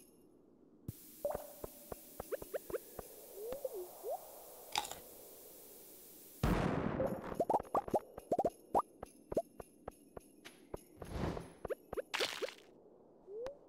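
Game sound effects of a pickaxe clink against rocks again and again.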